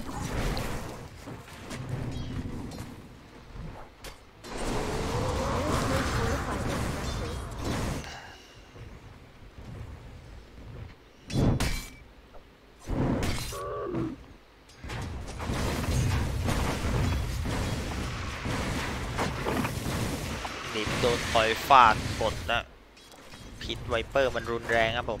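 Magic spells whoosh and burst amid clashing weapons in a fantasy battle.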